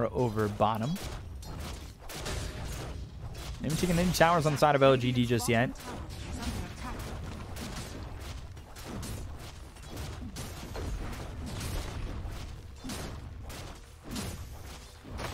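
Fighting sound effects from a video game clash and crackle rapidly.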